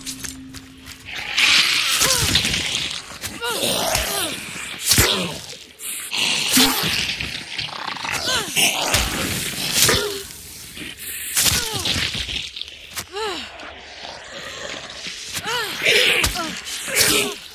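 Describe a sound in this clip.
A zombie growls and snarls close by.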